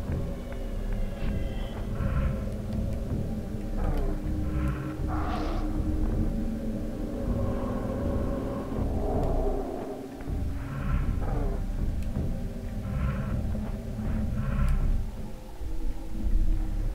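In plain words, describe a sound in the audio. A glowing blade hums with a low, steady drone.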